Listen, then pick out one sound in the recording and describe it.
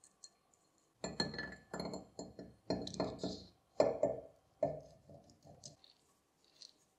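Metal parts clink and knock together.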